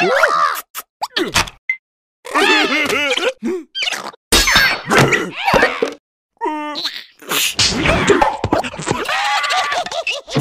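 High cartoonish voices jabber and squeal excitedly, close by.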